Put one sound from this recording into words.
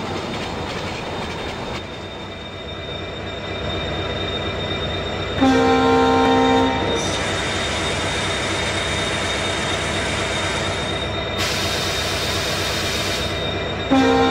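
A diesel locomotive engine rumbles steadily as a train rolls along.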